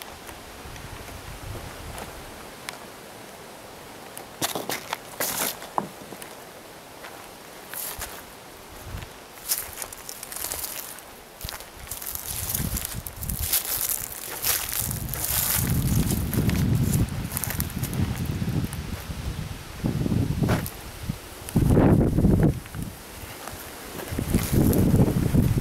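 Footsteps crunch on dry, gritty ground close by.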